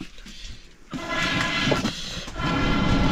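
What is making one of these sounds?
Food sizzles and bubbles in a pot.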